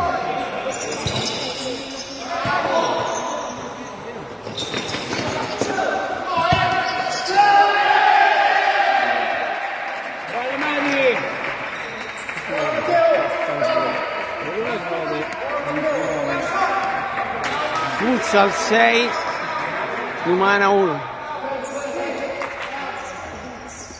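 Sneakers squeak on a hard court floor.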